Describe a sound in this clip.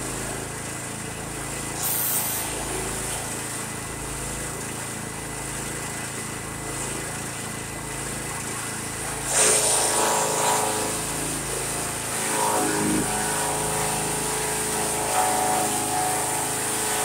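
A gasoline engine on a chipper shredder runs at speed.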